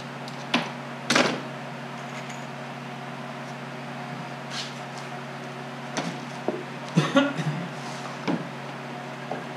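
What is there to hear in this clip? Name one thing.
Small tools clatter and knock on a workbench.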